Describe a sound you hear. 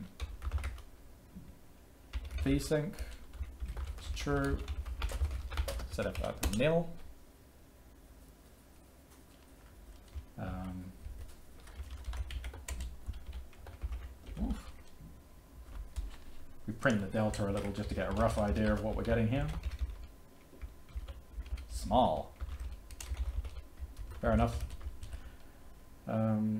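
Keys clatter on a computer keyboard.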